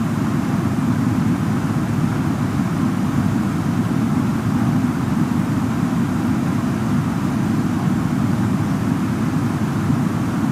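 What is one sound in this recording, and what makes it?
A jet airliner's engines drone steadily.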